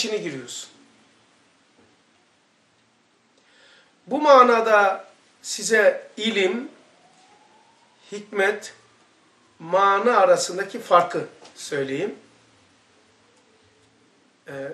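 An elderly man speaks calmly and slowly, close to a microphone, with pauses between phrases.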